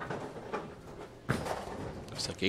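A bowling ball thuds onto a wooden lane.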